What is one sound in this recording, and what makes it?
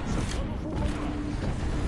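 A device charges up with a humming electronic whine.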